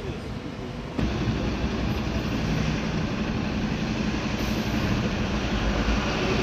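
An ambulance engine hums as it drives away.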